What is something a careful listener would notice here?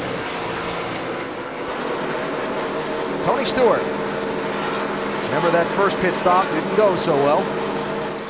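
A race car engine revs up and down from on board.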